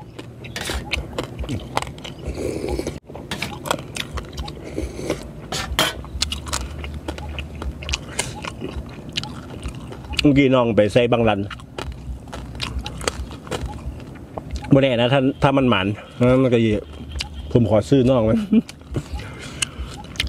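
A man chews food noisily up close.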